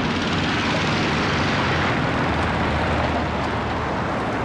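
A car engine rumbles as it approaches.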